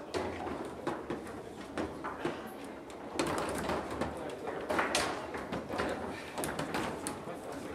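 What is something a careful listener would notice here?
Foosball rods clatter and the ball knocks sharply against the table.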